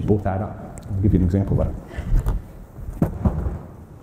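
Footsteps thud on a wooden stage.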